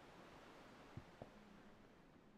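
Footsteps tap on hard concrete.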